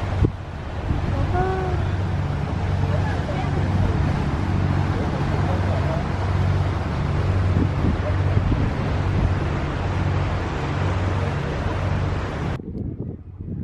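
Wind blows steadily and roughly outdoors.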